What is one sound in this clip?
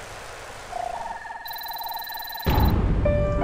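A menu opens with a short electronic chime.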